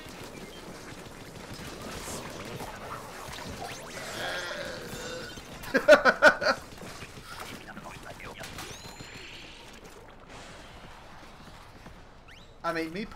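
Wet, splattering shots fire in rapid bursts.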